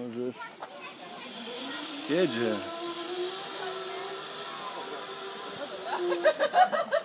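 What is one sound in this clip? A zipline pulley whirs along a cable.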